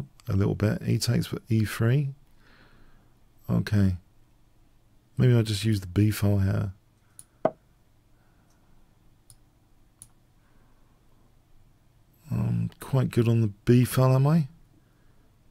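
An older man talks animatedly into a close microphone, in short bursts.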